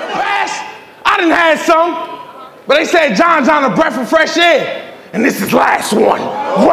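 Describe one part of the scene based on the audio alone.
A man raps in a loud, emphatic voice to an opponent.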